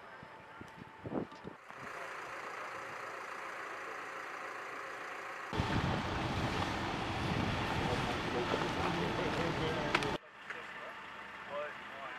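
A vehicle engine idles nearby.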